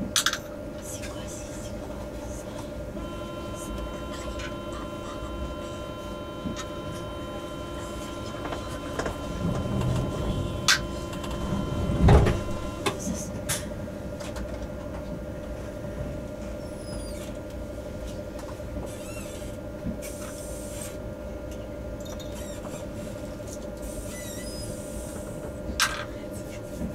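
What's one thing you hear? A train rolls past close by with a steady rumble and hum.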